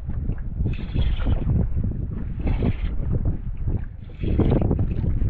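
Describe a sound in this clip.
Waves lap against a small boat's hull.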